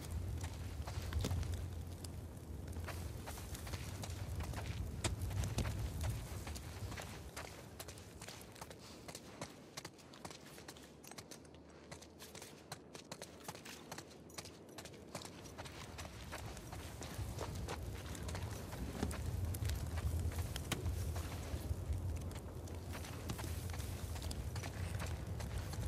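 Footsteps crunch on gritty ground.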